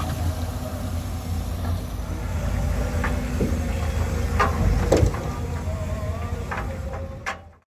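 A heavy excavator engine rumbles steadily close by.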